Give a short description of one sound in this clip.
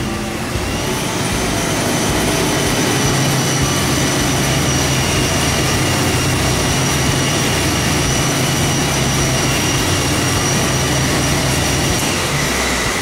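A turbocharger whines at a high pitch.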